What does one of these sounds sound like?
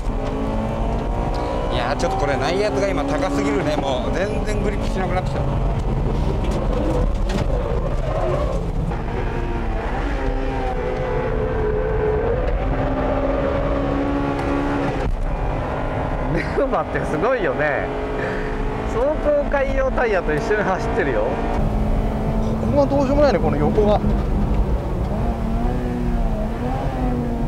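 A car engine roars loudly, its pitch rising and falling through the gears.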